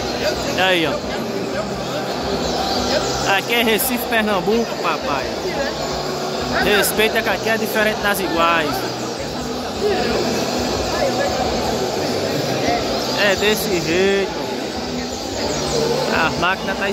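A crowd of men chatters steadily in a large echoing hall.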